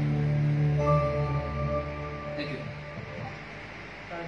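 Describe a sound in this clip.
A keyboard plays sustained electronic chords.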